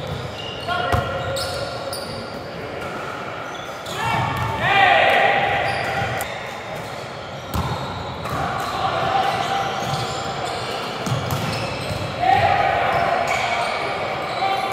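A volleyball is struck with sharp slaps in an echoing hall.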